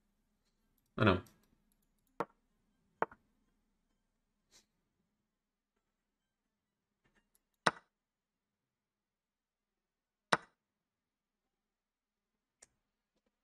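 Chess pieces click sharply as moves are played.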